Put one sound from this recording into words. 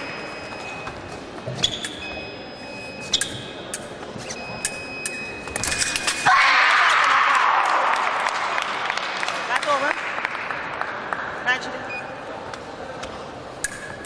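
Sports shoes squeak sharply on a hard floor in an echoing hall.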